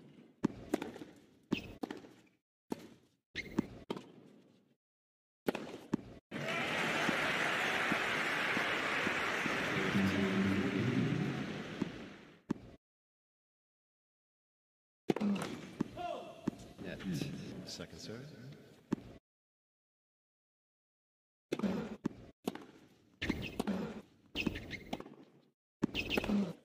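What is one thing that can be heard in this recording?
A tennis ball is struck hard by rackets with sharp pops.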